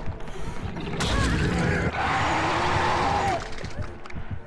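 A monster lets out a loud, shrill screech.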